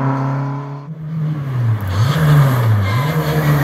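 A second rally car engine revs and growls as the car approaches.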